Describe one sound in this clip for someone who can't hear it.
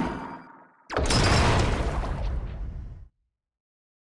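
A dramatic whooshing game sound swells and fades.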